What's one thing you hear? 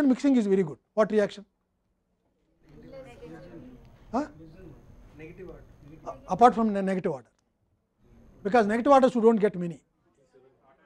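An elderly man speaks calmly through a close microphone, in short phrases with pauses.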